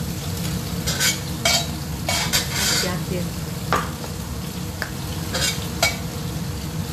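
A metal spatula scrapes and clinks against a metal wok.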